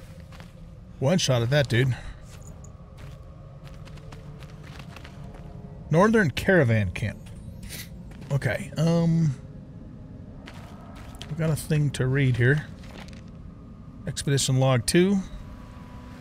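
An older man talks calmly into a close microphone, in short bursts.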